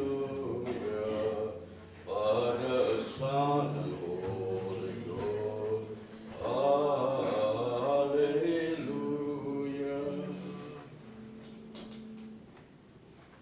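A man chants slowly in a large echoing hall.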